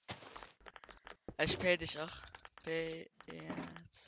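A block is placed with a short thud.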